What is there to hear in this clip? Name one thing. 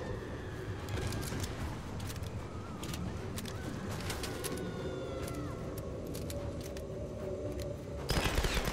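Wind howls steadily.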